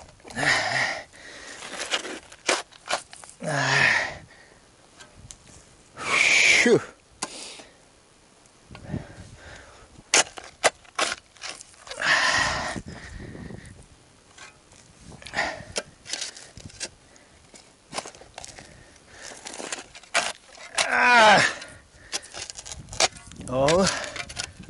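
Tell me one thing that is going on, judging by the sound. Dry grass and twigs rustle and crackle underfoot.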